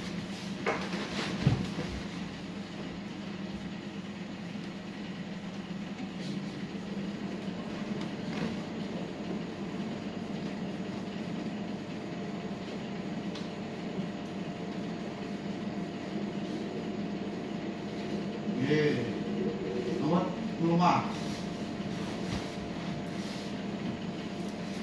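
An electric fan whirs steadily nearby.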